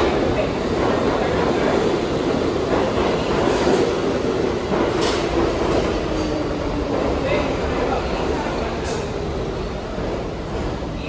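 A subway train rumbles and rattles loudly past in an echoing underground station.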